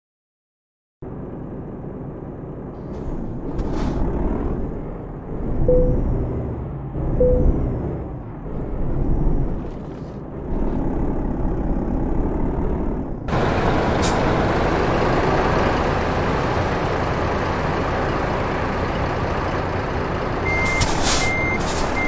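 A truck engine rumbles steadily as the truck drives and reverses.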